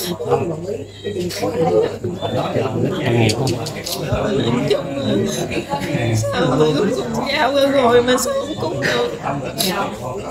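A woman speaks tearfully close by, her voice breaking.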